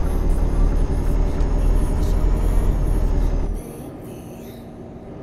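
A truck engine rumbles steadily, then drops quieter.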